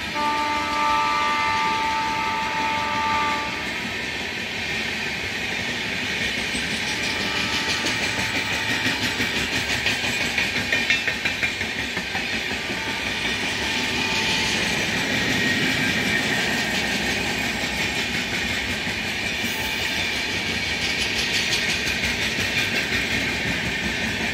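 A passenger train rumbles and clatters steadily past on the rails.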